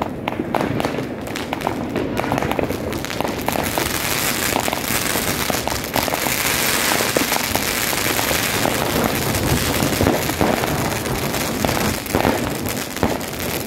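Firework rockets whoosh and hiss as they rise.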